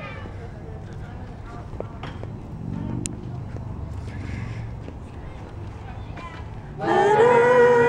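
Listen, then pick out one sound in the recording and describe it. Footsteps walk along a paved sidewalk outdoors.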